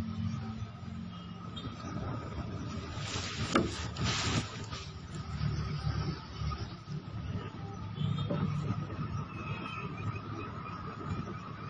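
Small objects click and rustle in a man's hands.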